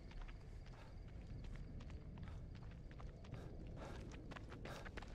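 Footsteps crunch through grass and gravel.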